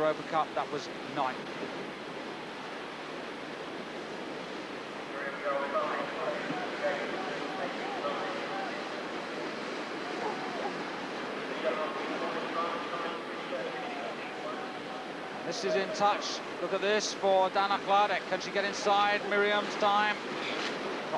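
Whitewater rushes and churns steadily.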